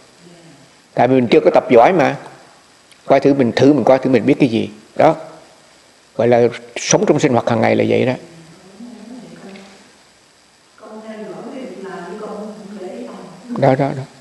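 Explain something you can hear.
An elderly man speaks calmly and close by, in short phrases.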